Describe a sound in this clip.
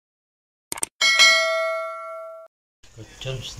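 A bright bell chime rings and fades.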